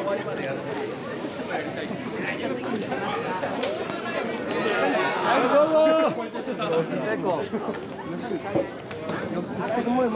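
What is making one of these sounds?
A large crowd of men chants and shouts rhythmically close by, outdoors.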